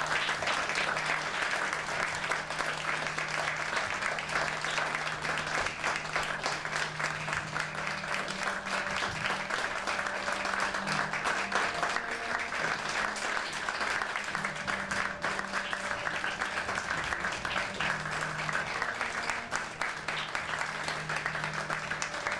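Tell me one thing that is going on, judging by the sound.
An audience applauds loudly and steadily in a hall.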